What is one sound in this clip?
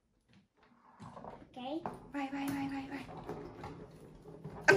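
Suitcase wheels roll across a wooden floor.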